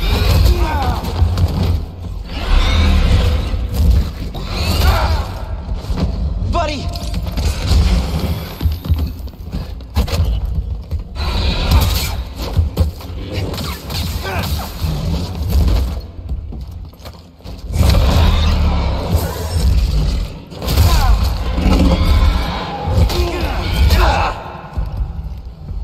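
A lightsaber hums and swings with sharp whooshes.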